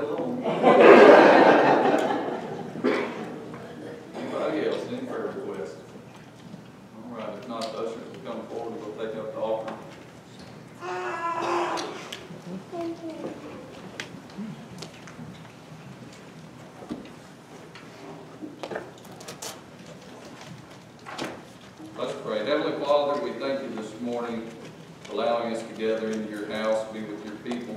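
A middle-aged man speaks calmly into a microphone over a loudspeaker in an echoing room.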